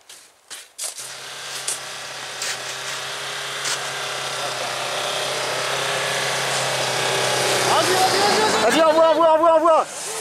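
A four-wheel-drive engine climbs through snow.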